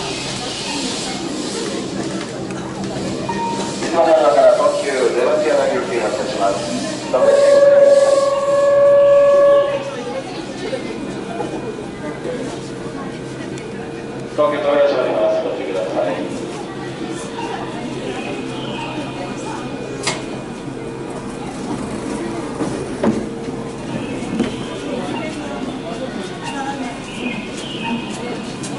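A train hums steadily while standing in an echoing station.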